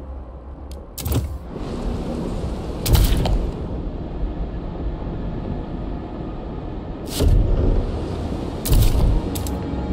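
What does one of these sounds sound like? Short whooshing clicks sound now and then.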